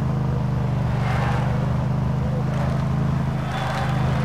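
A crowd cheers along the roadside.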